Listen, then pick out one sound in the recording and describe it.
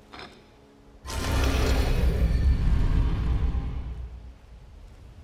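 A heavy stone slab grinds open with a loud rumble.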